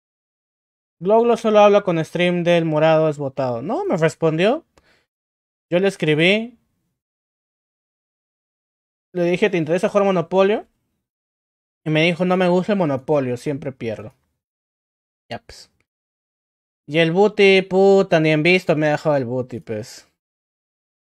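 A young man talks with animation into a microphone, in short bursts.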